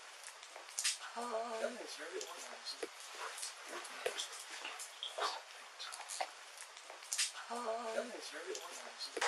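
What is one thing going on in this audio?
A woman moans close by.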